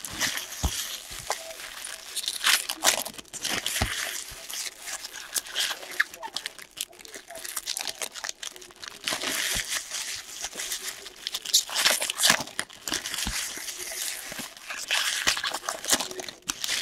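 Foil wrappers of trading card packs crinkle and tear as they are ripped open.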